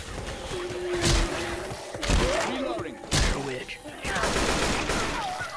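A rifle fires sharp shots in short bursts.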